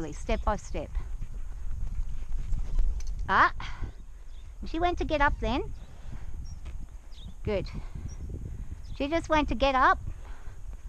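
A horse's hooves thud steadily on the dirt as it walks.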